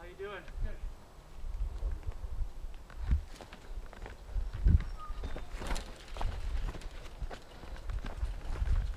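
Bicycle tyres roll and crunch over rocky dirt.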